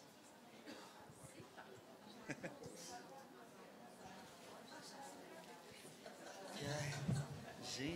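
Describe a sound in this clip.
A crowd of people murmurs and chatters quietly in a large hall.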